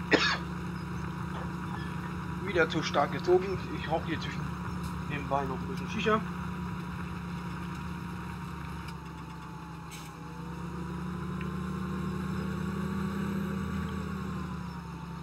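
A tractor engine hums steadily.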